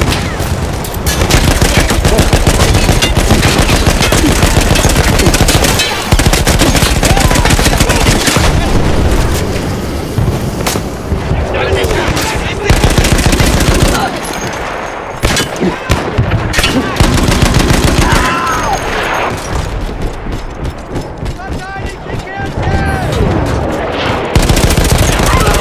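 A heavy machine gun fires in rapid bursts close by.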